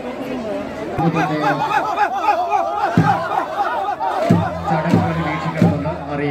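Many men chant and shout together loudly.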